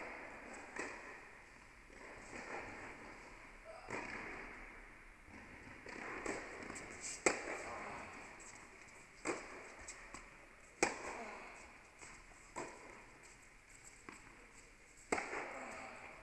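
Tennis balls are struck with a sharp pop in a large echoing hall.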